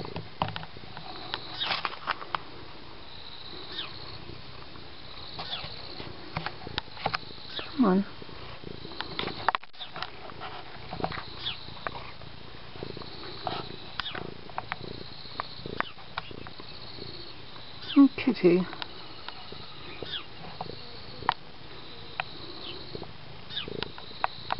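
A cat's fur rubs and brushes close against the microphone.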